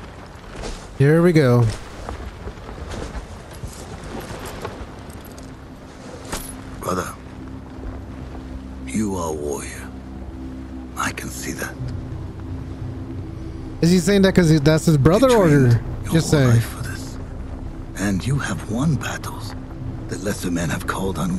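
A man speaks in a deep, slow voice, heard through a loudspeaker.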